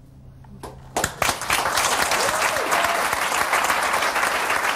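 An audience applauds loudly and cheers.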